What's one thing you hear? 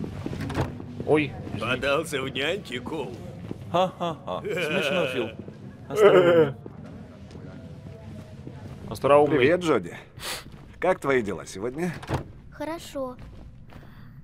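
A man speaks casually nearby.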